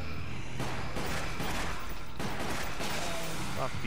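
Pistol shots ring out.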